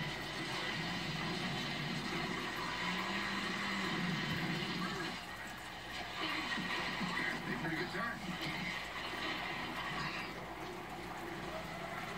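A television plays in the room.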